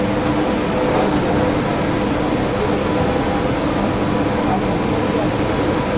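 A racing car engine idles with a steady, rough hum.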